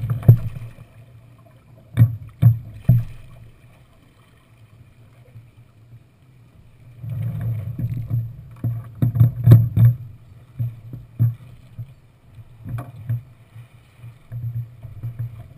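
Lines and fittings knock and rattle on a small sailboat.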